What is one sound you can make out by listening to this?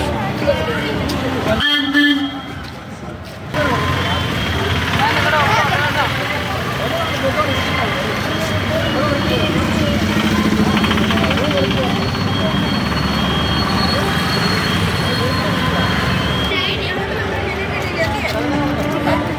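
A crowd of children chatters and calls out nearby, outdoors.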